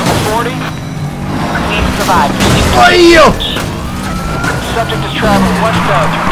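A racing car engine revs hard, rising and falling as gears shift.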